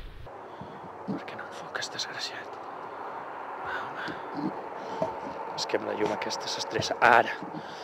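A young man talks casually close to a microphone.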